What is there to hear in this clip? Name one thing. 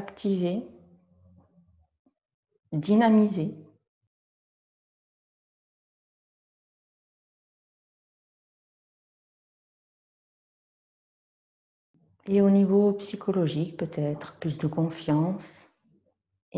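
An older woman speaks calmly and slowly, close by, with long pauses.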